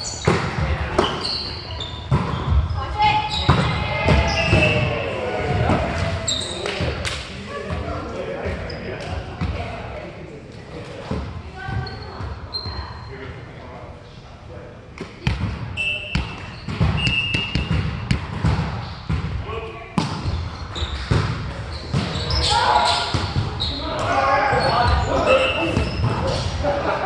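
Sneakers squeak on a wooden gym floor.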